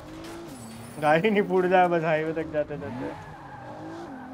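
Car tyres screech while skidding around a corner.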